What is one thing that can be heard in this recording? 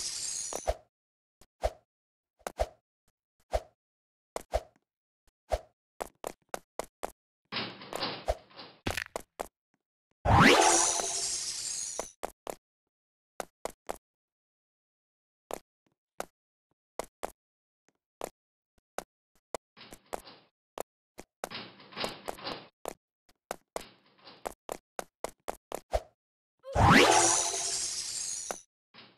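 Footsteps of a game character patter quickly on a hard floor.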